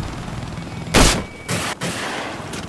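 A rifle fires loud single shots.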